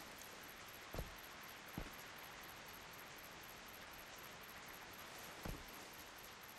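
Interface clicks sound as items move in a video game inventory.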